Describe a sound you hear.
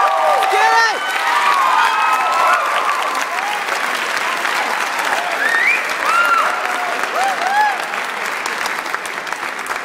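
An audience cheers and whoops loudly in a large hall.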